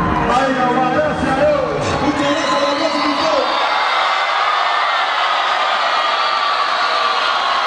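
A large crowd cheers and screams.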